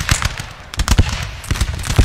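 A cannon booms.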